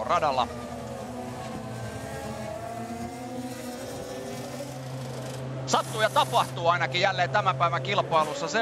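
Racing car engines whine steadily.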